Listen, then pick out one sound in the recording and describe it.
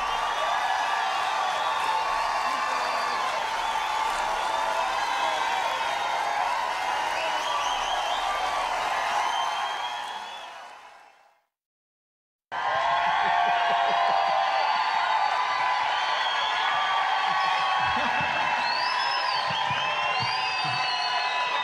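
A large crowd cheers, claps and whistles loudly in a big hall.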